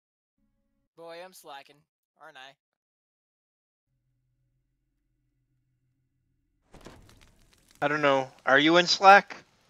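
A man speaks close to a microphone, at first quietly and then loudly with animation.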